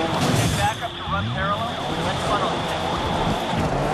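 A car crashes into a post.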